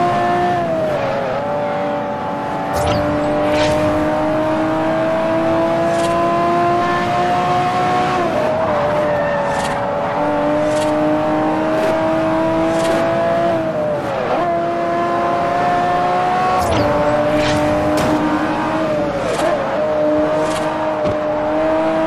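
Tyres screech through corners.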